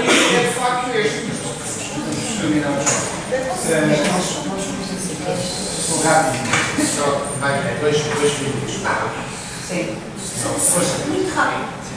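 A man speaks steadily through a microphone in an echoing room.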